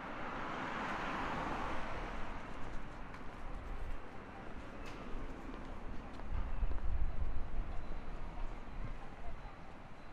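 Footsteps pass on a paved sidewalk.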